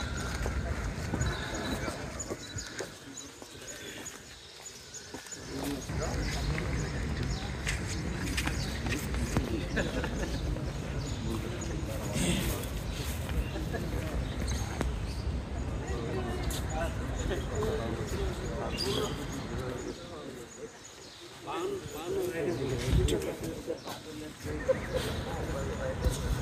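Men murmur and talk quietly nearby.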